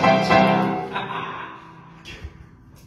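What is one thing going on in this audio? A woman sings a long, loud held note into a microphone in an echoing room.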